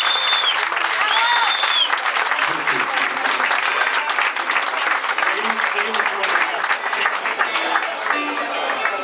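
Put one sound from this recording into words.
A crowd claps along and cheers.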